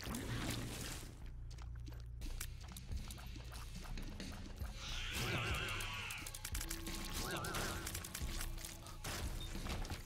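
Video game effects blip, zap and chime.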